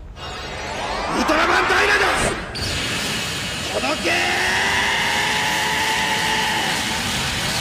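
An energy beam fires with a loud rushing whoosh.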